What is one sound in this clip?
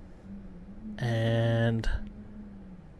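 A young man groans and strains loudly into a close microphone.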